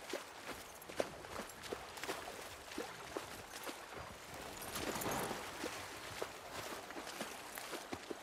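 A horse's hooves crunch steadily through snow.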